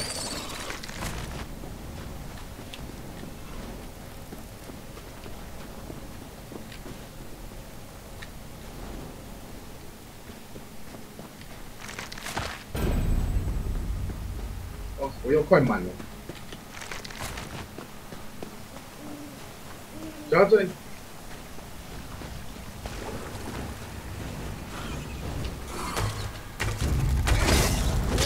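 Footsteps crunch through snow at a run.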